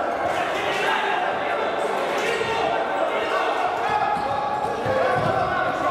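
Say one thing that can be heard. A futsal ball bounces on a wooden floor.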